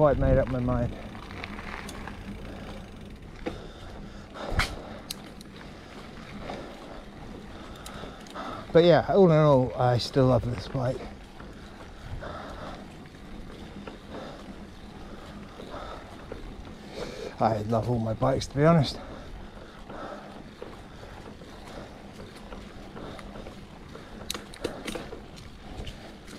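Bicycle tyres roll steadily over a rough paved lane.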